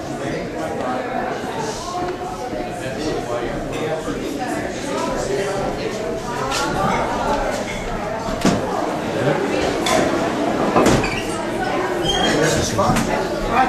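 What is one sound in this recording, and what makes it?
Dishes and glasses clink.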